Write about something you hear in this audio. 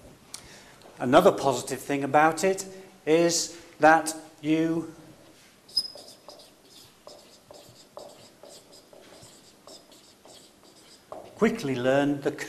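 A man speaks calmly and clearly, fairly close.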